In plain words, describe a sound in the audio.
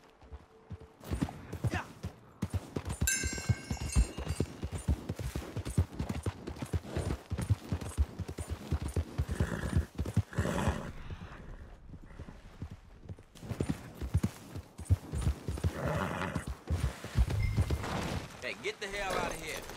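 A horse gallops over snowy ground.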